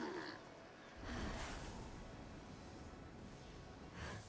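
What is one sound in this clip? Wind rushes past as a character glides through the air.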